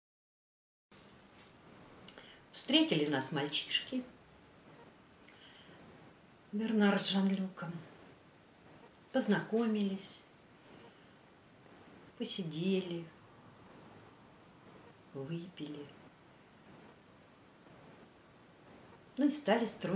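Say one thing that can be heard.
An older woman speaks calmly in short phrases, close by.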